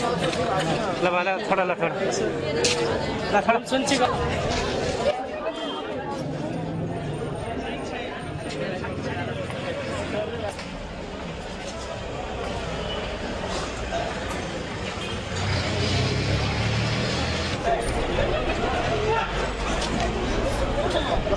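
A crowd of men and women chatters and calls out nearby in an echoing hall.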